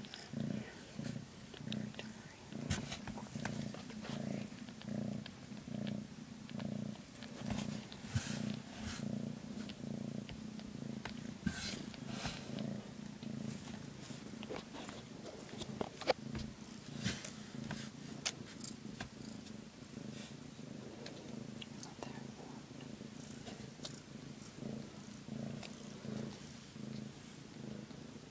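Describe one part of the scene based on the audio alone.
A blanket rustles as a cat shifts.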